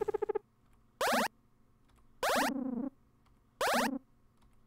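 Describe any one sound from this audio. A short electronic chime sweeps quickly upward, several times.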